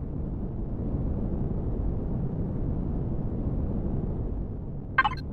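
A spaceship's engines rumble low and steady.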